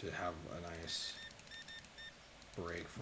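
A checkout scanner beeps.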